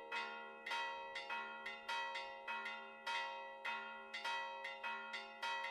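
Church bells ring in a rapid, repeating peal, each stroke ringing on.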